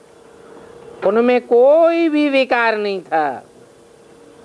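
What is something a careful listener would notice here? An elderly man reads out in a slow, singing voice close by.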